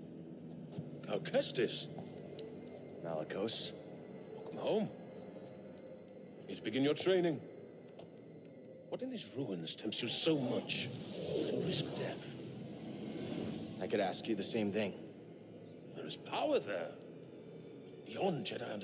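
An older man speaks calmly and grandly.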